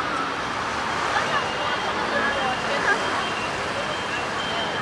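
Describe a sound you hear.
Young women chat nearby.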